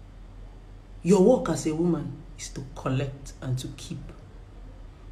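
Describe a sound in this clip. A woman speaks close up, with feeling.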